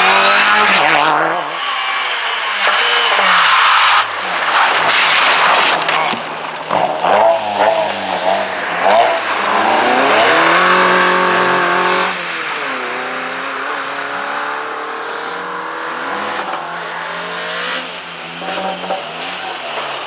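A rally car engine roars loudly and revs up and down as it speeds past.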